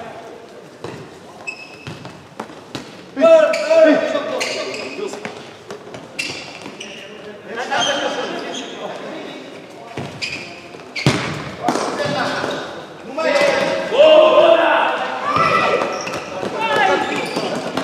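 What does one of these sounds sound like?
A ball is kicked with sharp thuds in an echoing hall.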